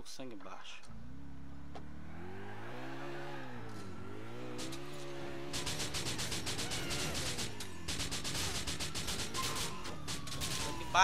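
A car engine revs and roars as it speeds away.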